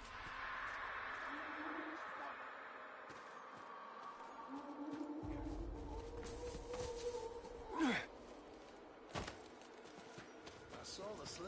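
Wind howls steadily.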